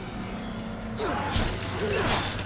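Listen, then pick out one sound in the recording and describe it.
A loud, wet burst of gore splatters.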